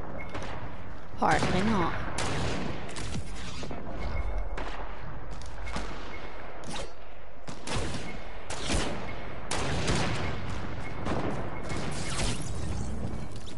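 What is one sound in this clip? A pickaxe strikes wooden walls with repeated hard thuds.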